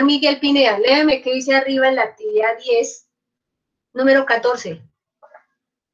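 A woman speaks with animation close to a microphone, heard over an online call.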